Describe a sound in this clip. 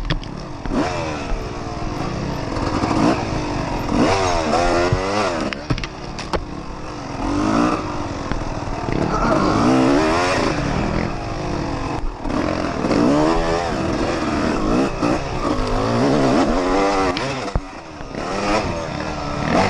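A dirt bike engine revs up and down loudly and close by.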